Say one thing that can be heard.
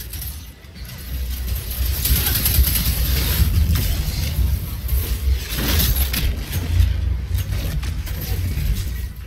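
Heavy explosions boom and rumble.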